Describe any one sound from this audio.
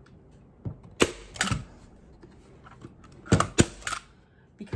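A staple gun snaps sharply several times.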